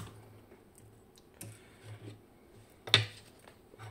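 A wooden box knocks down onto a stone surface.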